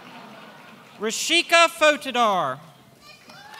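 A man announces over a loudspeaker in a large echoing hall.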